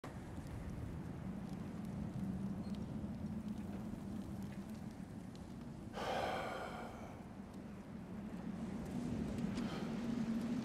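Wind blows softly outside a cave.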